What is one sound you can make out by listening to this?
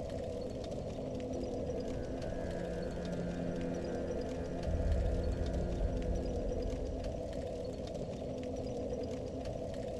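A fire crackles softly and steadily.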